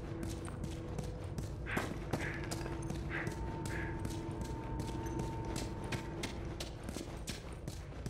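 Footsteps crunch on a gritty floor at a steady walking pace.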